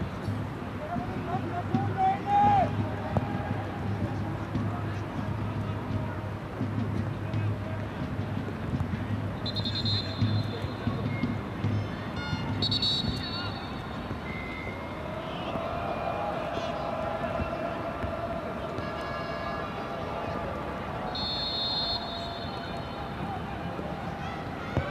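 A large crowd murmurs and chants steadily in an open stadium.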